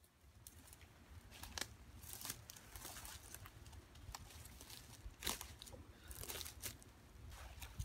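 Footsteps crunch on dry grass and twigs.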